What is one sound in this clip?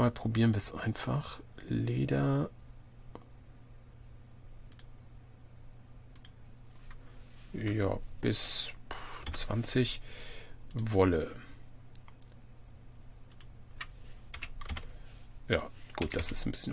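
Soft clicks tick now and then.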